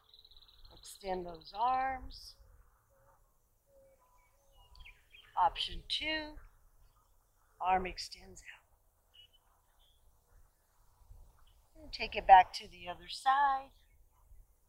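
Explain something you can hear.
A young woman speaks calmly in short phrases, close by.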